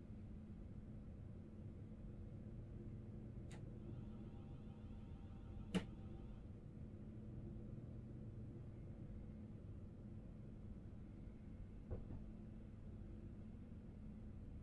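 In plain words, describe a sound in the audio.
A train engine hums steadily from inside a driver's cab.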